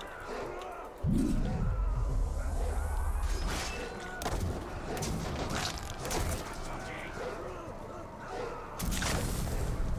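Blades clash and thud in a fight.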